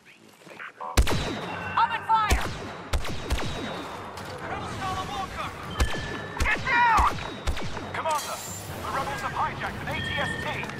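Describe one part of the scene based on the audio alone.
Blaster shots fire in sharp bursts.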